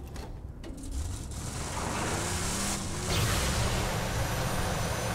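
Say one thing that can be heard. A vehicle engine roars and revs as it drives away.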